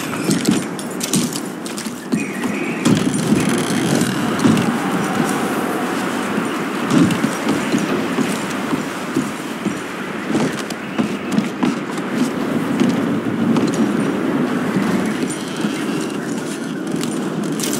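Footsteps thud on creaky wooden floorboards.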